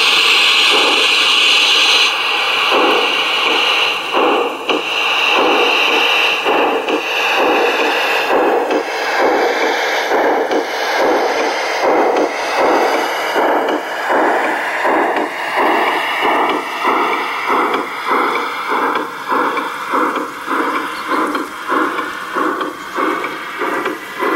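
A small steam locomotive chuffs in a steady rhythm that slowly eases off.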